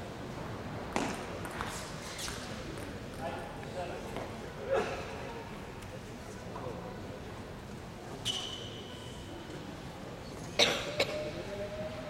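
A table tennis ball clicks sharply off paddles and the table.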